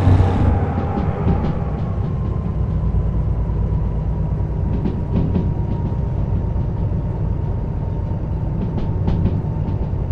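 A locomotive's wheels clatter over rail joints.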